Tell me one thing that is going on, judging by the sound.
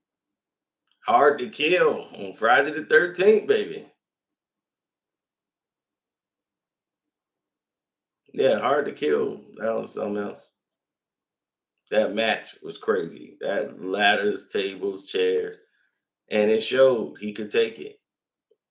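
A middle-aged man talks calmly into a nearby microphone, with pauses between phrases.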